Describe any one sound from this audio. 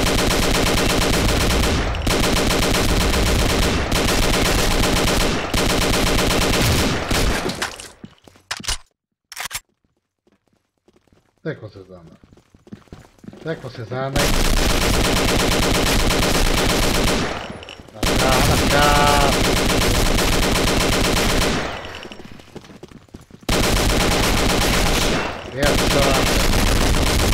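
Rapid bursts of automatic gunfire fire in quick succession.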